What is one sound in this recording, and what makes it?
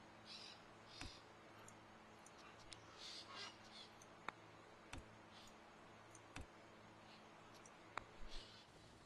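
Short interface clicks sound as menus open and close.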